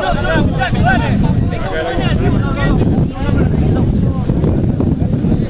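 Men shout to one another across an open field.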